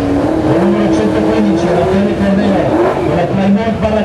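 Tyres squeal as a car spins its wheels.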